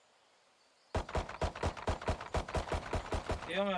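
Rapid pistol shots ring out in a fast series.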